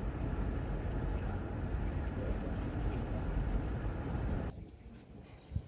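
A car drives along a road with a steady rumble of tyres and engine.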